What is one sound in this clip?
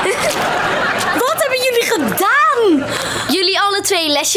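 A young woman shrieks in disgust.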